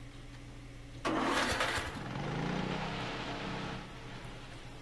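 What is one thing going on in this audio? A small engine pump starts with a hiss and runs.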